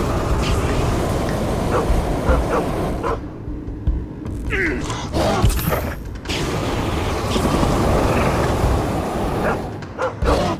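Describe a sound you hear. A flamethrower roars in loud bursts.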